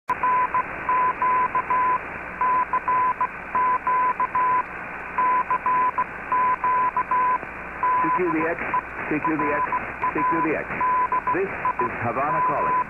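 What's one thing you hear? A radio beeps out a steady tone in short and long pulses of code.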